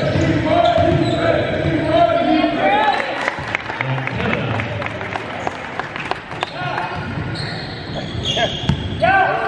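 Young men shout and call out across an echoing gym.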